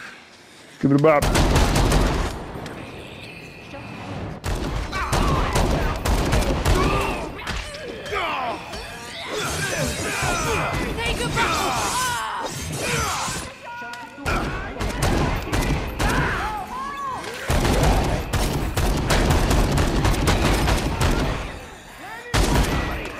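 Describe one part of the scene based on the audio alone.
Gunshots fire rapidly, again and again.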